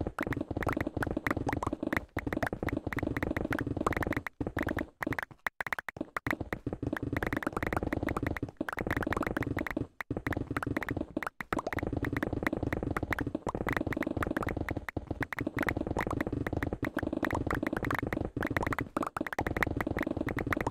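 Stone blocks burst apart in rapid crackling blasts.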